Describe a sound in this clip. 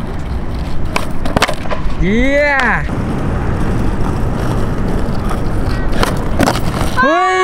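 A skateboard tail snaps sharply against the ground.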